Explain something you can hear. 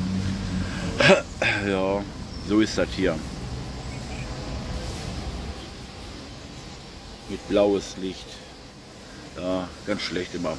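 An elderly man speaks with animation, close to the microphone, in short bursts with pauses.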